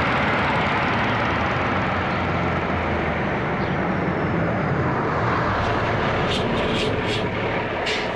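A truck engine rumbles as the truck drives by.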